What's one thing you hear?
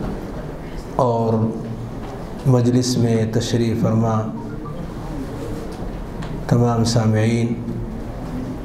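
A middle-aged man speaks calmly into a microphone in bursts, with pauses between phrases.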